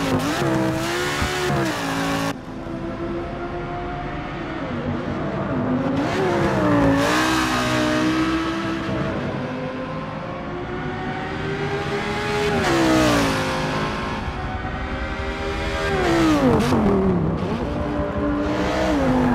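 A racing car engine roars loudly, rising and falling in pitch as it shifts gears.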